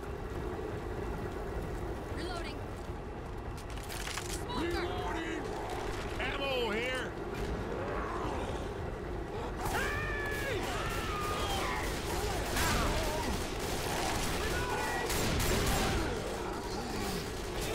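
A shotgun fires in sharp, loud blasts.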